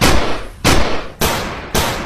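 A toy gun fires with loud, echoing bangs.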